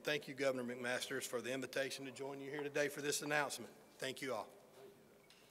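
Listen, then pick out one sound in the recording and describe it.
A middle-aged man speaks into a microphone at a podium, in a large echoing hall.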